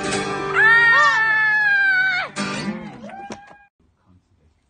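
A man sings.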